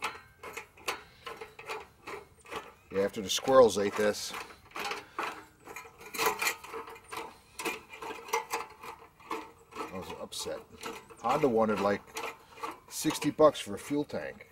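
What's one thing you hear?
Metal parts click and clink as hands work on a small engine.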